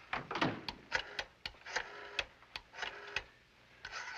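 A man dials a telephone with clicking turns.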